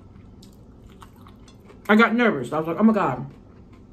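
A woman chews crunchy food close up.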